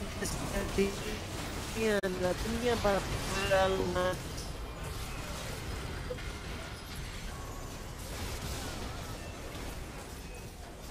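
Spell effects and weapon hits clash in a hectic video game battle.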